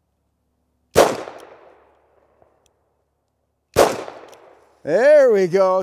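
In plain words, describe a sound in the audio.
A gun fires two loud shots outdoors, each echoing away.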